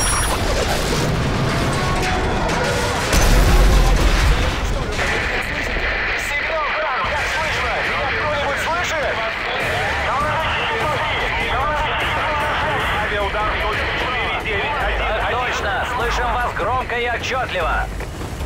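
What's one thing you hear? Explosions boom and rumble with deep blasts.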